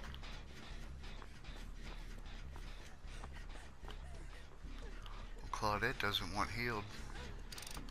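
Footsteps run over leaves and grass.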